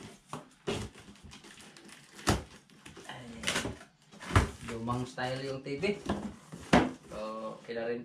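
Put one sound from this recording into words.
Cardboard rustles and thumps as a box is handled.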